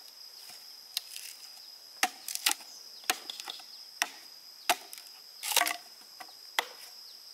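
A machete chops into a bamboo pole with sharp knocks.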